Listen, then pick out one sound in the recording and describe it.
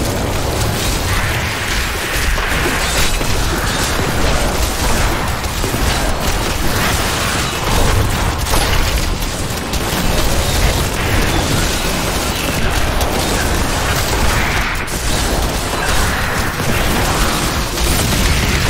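Game combat effects crash and blast without pause.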